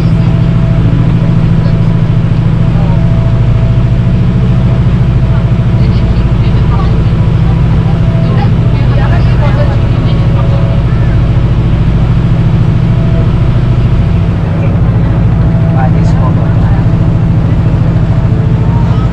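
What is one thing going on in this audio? A boat engine drones steadily and loudly close by.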